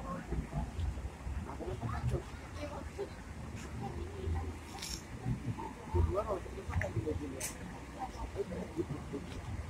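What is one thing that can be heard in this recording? A young woman and men talk nearby outdoors.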